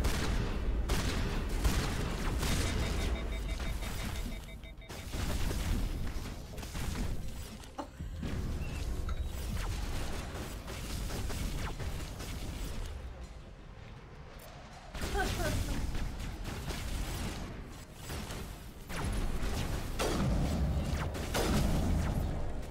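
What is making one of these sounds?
A young woman talks with animation, close by.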